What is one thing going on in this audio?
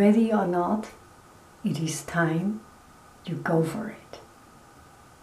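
A middle-aged woman speaks calmly and close by.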